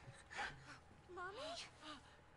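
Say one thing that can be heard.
A young girl calls out softly, close by.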